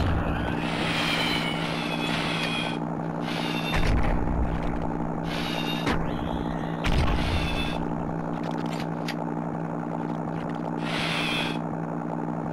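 A paintball gun fires in quick pops.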